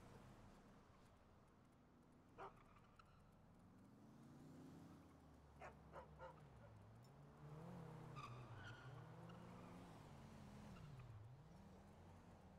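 Dog paws patter quickly on asphalt.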